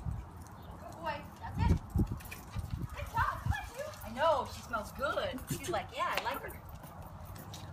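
A woman talks softly to a dog in a high, coaxing voice.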